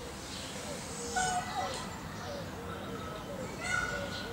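A peacock rattles its fanned tail feathers.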